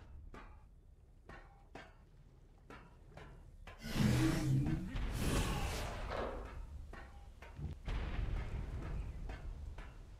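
Footsteps clank on a hard metal floor.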